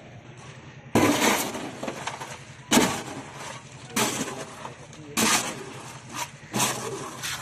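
A shovel scrapes and slaps wet concrete.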